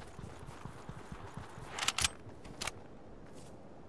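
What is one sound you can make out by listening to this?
Footsteps crunch on snow in a game.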